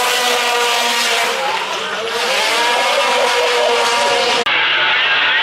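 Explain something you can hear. Tyres squeal as a car drifts.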